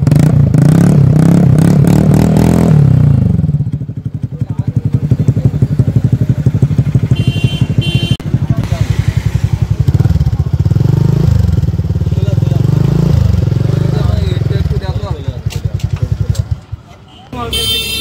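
A motorcycle engine idles with a steady, rapid putter from its exhaust.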